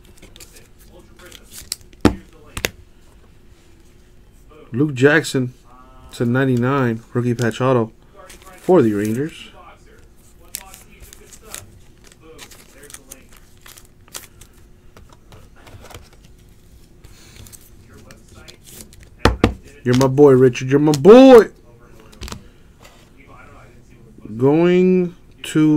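Trading cards and plastic card sleeves rustle and click as they are handled.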